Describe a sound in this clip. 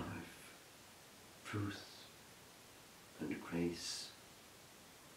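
An older man speaks slowly and calmly, with pauses between words.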